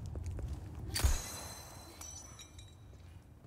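A heavy metal gate clanks and rattles.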